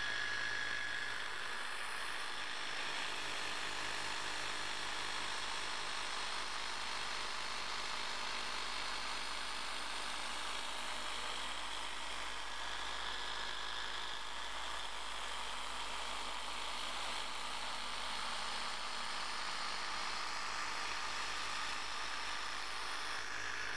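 A polishing machine whirs steadily on a car's paint.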